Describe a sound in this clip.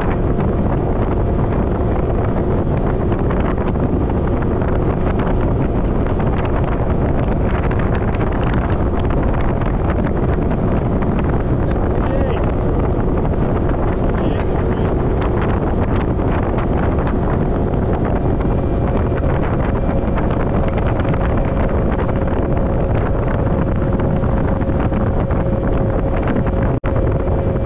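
Strong wind gusts roar and buffet the microphone outdoors.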